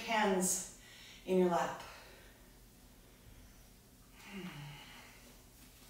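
A young woman speaks calmly and softly nearby.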